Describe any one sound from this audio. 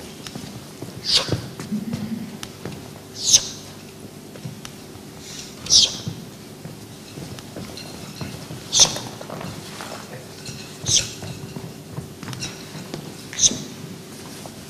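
A man exhales sharply in rhythm with each push-up.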